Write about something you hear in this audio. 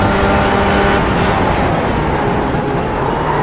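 A racing car engine drops in pitch braking for a corner.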